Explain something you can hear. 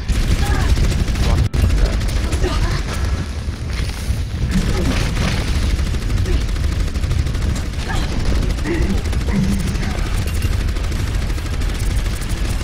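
A grenade launcher fires repeated heavy shots.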